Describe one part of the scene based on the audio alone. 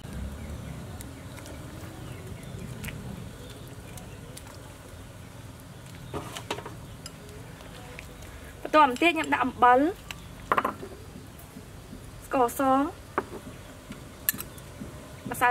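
Water bubbles at a rolling boil in a pot.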